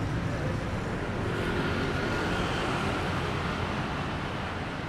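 A motorbike engine passes by.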